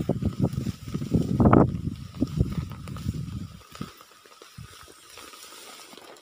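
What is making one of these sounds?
A stick drags and rustles through dry grass.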